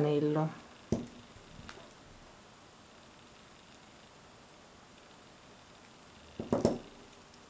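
Metal pliers click and clink against a small chain.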